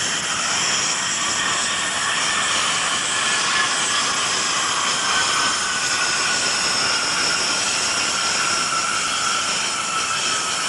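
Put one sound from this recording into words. Jet engines roar loudly and steadily with a high whine.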